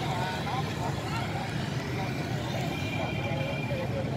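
A motor scooter drives past slowly.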